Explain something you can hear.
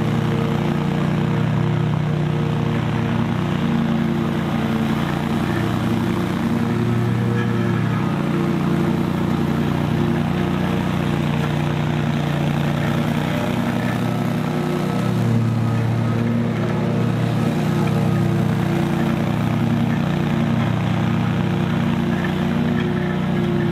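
A riding lawn mower engine drones steadily nearby, rising and falling slightly in pitch as it turns.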